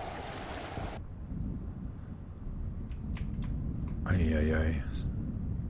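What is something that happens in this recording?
Water gurgles dully underwater.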